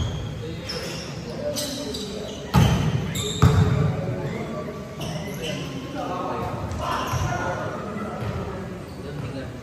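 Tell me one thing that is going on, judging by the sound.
Young players call out and chatter across the court.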